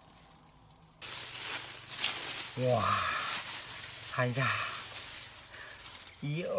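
Dry grass and leaves rustle close by as hands handle them.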